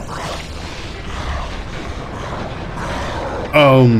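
A heavy lever grinds as it is pulled.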